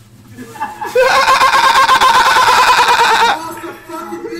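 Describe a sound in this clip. A young man shouts excitedly over a microphone.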